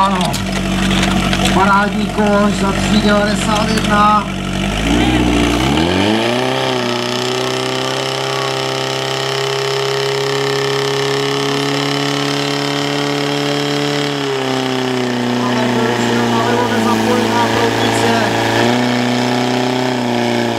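A pump engine runs loudly, then revs up to a high steady drone.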